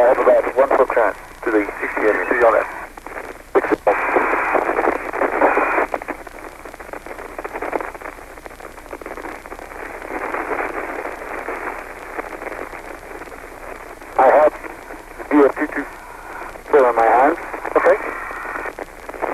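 A man speaks over a crackly radio link.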